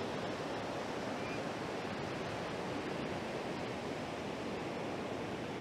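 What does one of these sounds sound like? Waves break and wash onto a beach, steady and close.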